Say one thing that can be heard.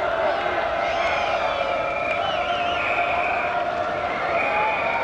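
A large stadium crowd roars and whistles in the open air.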